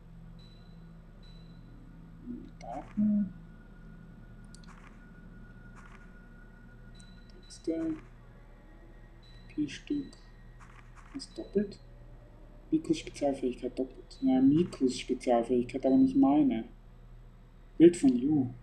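Short electronic menu blips sound as selections change.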